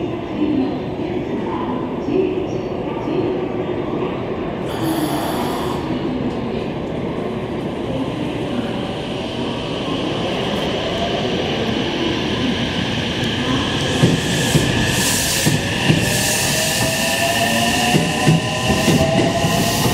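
An electric train rolls slowly into a station with a low rumble.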